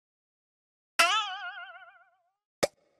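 A wobbly falling tone plays.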